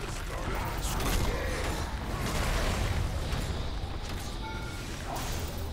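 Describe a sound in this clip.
Magical spell effects whoosh and crackle in bursts.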